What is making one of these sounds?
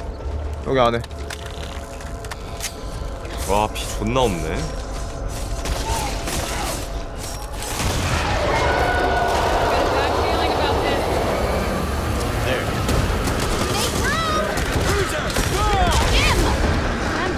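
Monsters screech and howl.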